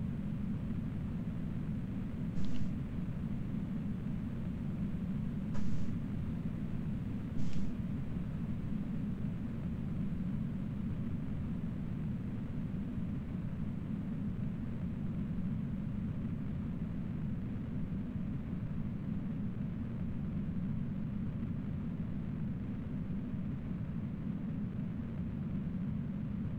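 A rocket engine roars steadily and deeply.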